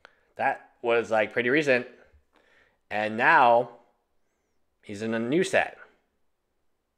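A man speaks calmly and clearly into a close microphone, in short bursts with pauses.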